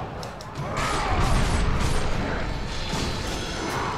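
Heavy blows strike during a fight.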